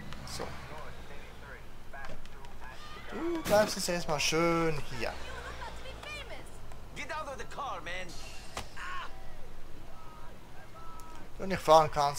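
A car door opens and thuds shut.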